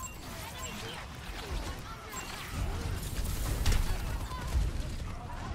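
Laser beams hum and crackle as they fire.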